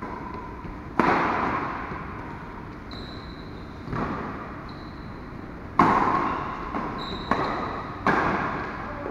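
Badminton rackets strike a shuttlecock, with the smacks echoing in an indoor hall.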